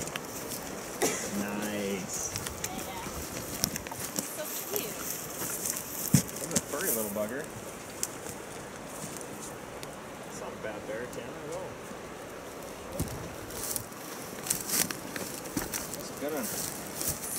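A man talks quietly outdoors, close by.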